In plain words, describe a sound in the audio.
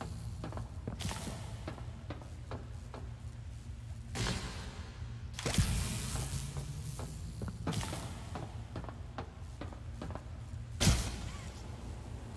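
An electric beam zaps and crackles in sharp bursts.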